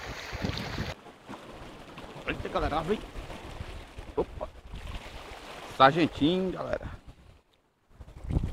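Waves splash against rocks.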